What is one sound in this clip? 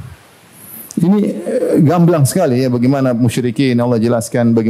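A man speaks with animation into a microphone, close by.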